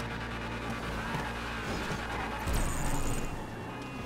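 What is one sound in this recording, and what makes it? A car's hydraulics thump as the car hops.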